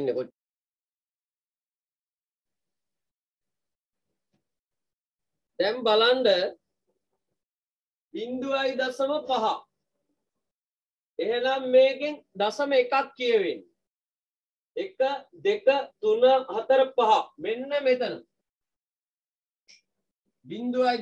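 A man speaks calmly and clearly, close by, explaining in short phrases with pauses.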